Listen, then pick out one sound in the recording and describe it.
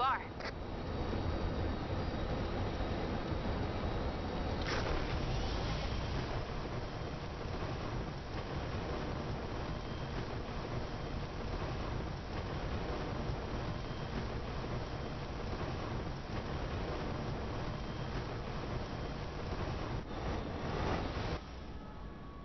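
A steady rush of wind whooshes past as something flies fast through the air.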